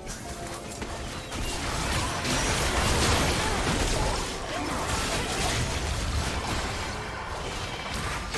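Spell effects whoosh and burst in a game fight.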